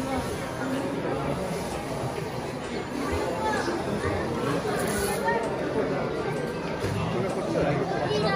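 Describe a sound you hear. A crowd of men, women and children murmurs and chatters nearby.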